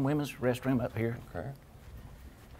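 A man speaks briefly nearby.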